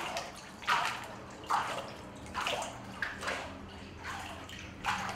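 Water sloshes and splashes rhythmically in a shaken wooden frame.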